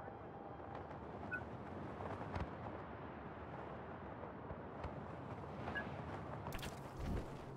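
Wind rushes loudly past a wingsuit gliding at speed.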